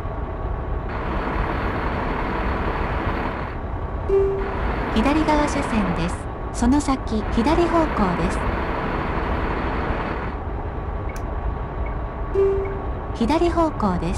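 A truck engine rumbles steadily while driving.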